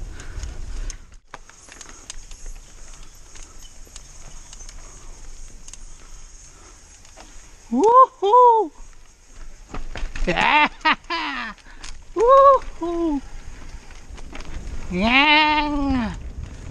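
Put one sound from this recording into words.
A bicycle's frame rattles over bumps.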